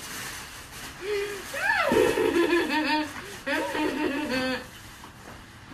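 A young woman speaks playfully and with animation, close by.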